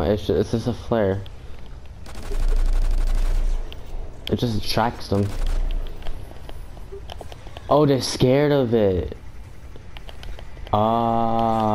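A pistol fires shots in quick bursts.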